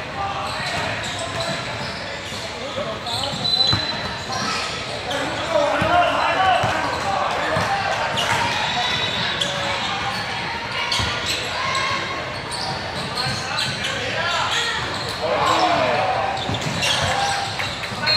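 Young boys shout and call out to one another in a large echoing gym.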